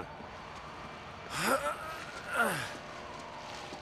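A second man answers in a tense voice.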